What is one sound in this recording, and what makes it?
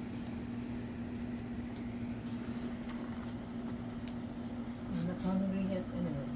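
Meat sizzles on a grill over hot coals.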